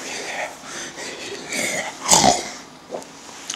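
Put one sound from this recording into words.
A young man speaks quietly, close by.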